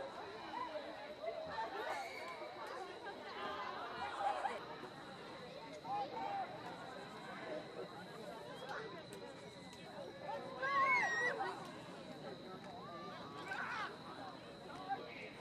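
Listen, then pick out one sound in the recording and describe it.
Spectators cheer and shout outdoors at a distance.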